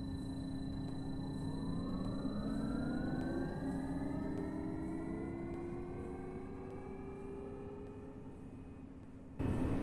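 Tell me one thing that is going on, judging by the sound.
A bus motor whines, rising in pitch as the bus pulls away.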